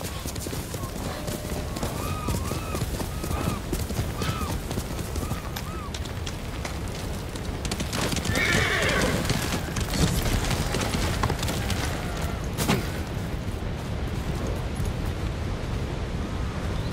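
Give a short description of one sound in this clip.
Wind blows steadily through grass.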